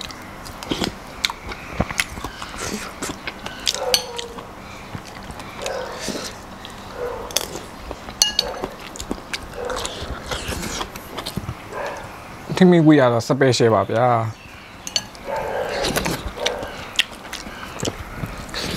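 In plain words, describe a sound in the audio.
A man chews and smacks his food close to the microphone.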